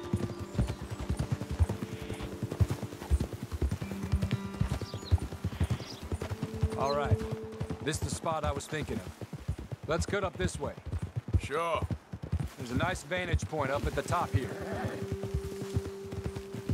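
Horses' hooves clop steadily on a dirt trail.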